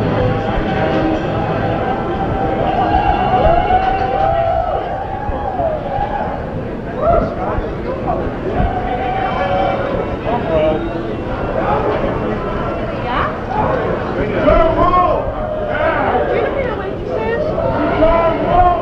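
An electric guitar plays loud, distorted rock.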